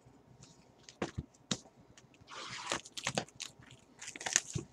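A cardboard box is handled and knocks on a table.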